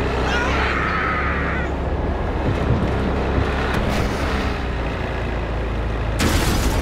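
A truck engine rumbles steadily as it drives.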